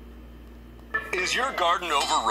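A cartoon's soundtrack suddenly starts playing loudly through a small speaker.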